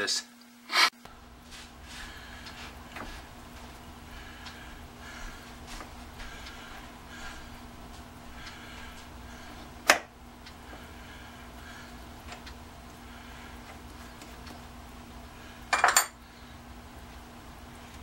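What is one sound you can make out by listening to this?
A lathe motor hums steadily.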